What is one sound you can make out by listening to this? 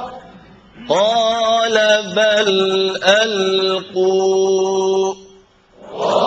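A man sings a long, wavering melody into a microphone, loud and amplified.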